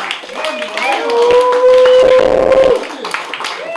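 A man lets out a long, loud whoop.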